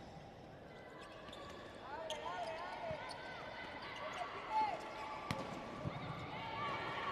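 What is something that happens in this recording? A crowd cheers in a large echoing hall.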